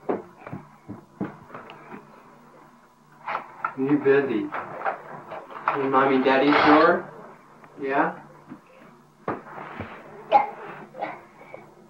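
A man talks playfully nearby.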